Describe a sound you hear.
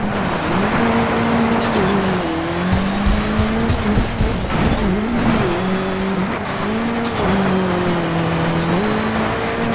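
Tyres skid and crunch over gravel.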